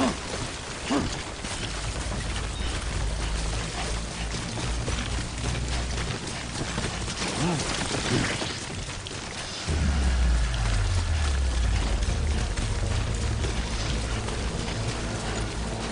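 Footsteps crunch on grass and rocks.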